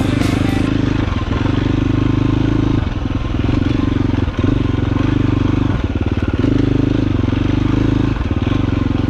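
A dirt bike engine revs loudly close by, rising and falling as the rider works the throttle.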